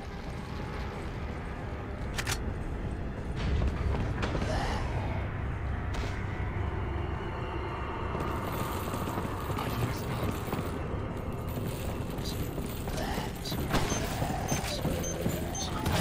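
Footsteps thud on a wooden walkway.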